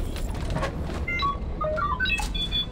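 A small robot chirps and beeps in quick bursts.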